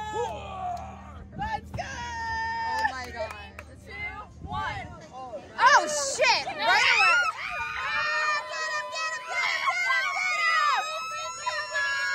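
A man shouts and laughs with excitement nearby.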